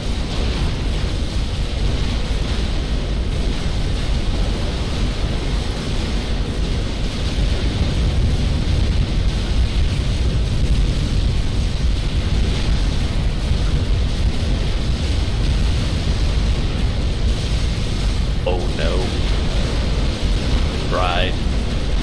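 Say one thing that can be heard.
Explosions and laser fire rumble and crackle throughout a large battle.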